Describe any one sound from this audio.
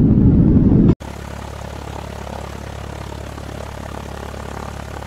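An airship's engine drones steadily.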